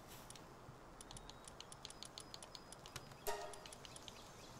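Soft menu clicks tick in quick succession.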